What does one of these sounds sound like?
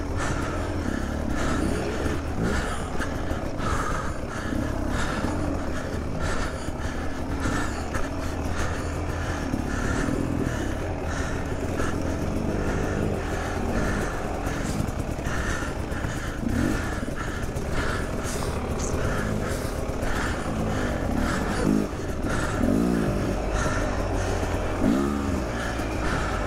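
A dirt bike engine putters and revs unevenly close by.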